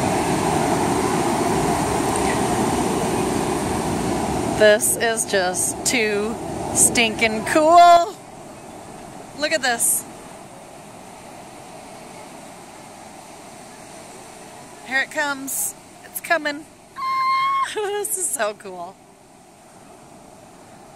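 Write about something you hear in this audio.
Waves break and wash onto a beach outdoors.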